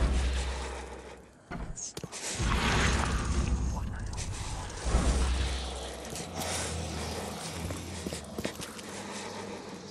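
Footsteps thud slowly across a floor.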